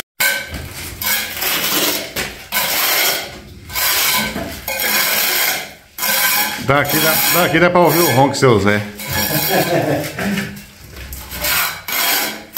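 A trowel scrapes plaster across a wall.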